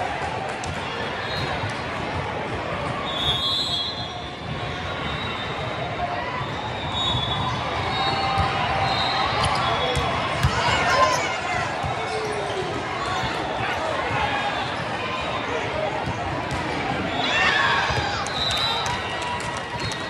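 Shoes squeak sharply on a court floor.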